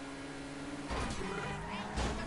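A car scrapes and crashes into another car with a metallic bang.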